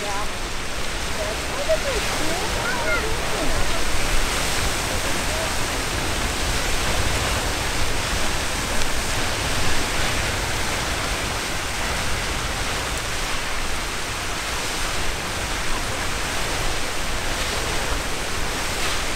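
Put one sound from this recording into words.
A geyser erupts with a steady roaring hiss of water and steam.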